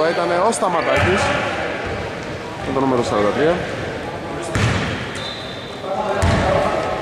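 A basketball bounces with hollow thuds in an echoing hall.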